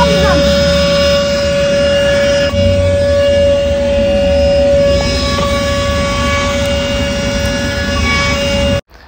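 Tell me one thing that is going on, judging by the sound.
A handheld vacuum cleaner whirs with a steady high whine.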